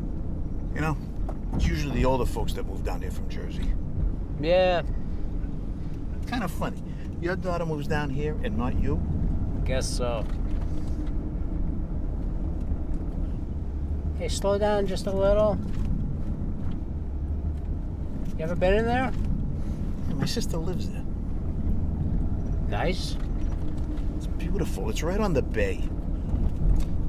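A middle-aged man talks calmly in a car, close by.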